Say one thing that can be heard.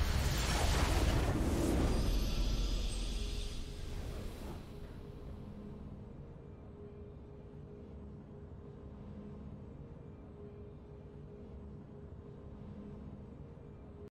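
A triumphant game fanfare plays and fades.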